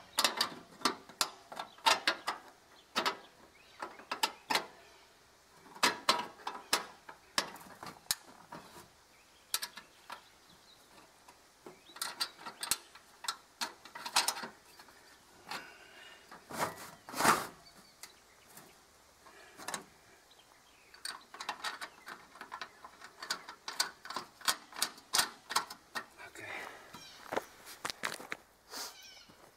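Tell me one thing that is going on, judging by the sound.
Metal clicks and clanks sharply against a ribbed steel pipe.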